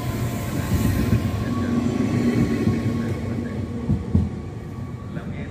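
A train rumbles away along the tracks and fades.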